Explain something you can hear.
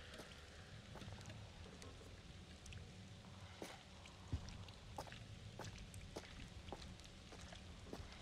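Footsteps crunch slowly on the ground.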